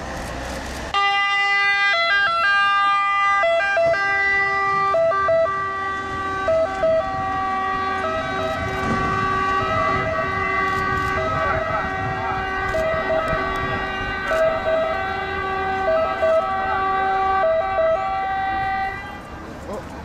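An ambulance siren wails in a steady two-tone pattern close by.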